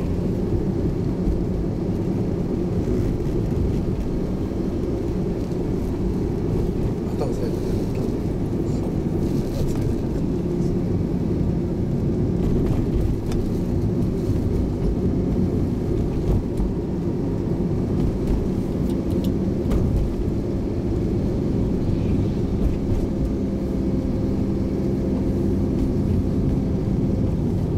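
Wind rushes and rumbles outdoors.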